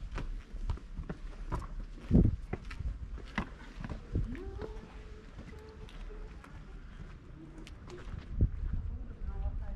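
Footsteps slap and scuff on stone paving.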